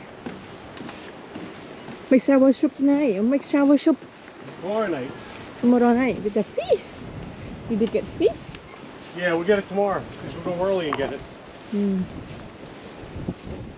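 Footsteps thud on a wooden boardwalk.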